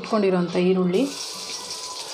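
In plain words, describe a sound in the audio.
Onion pieces drop into a hot pan and sizzle.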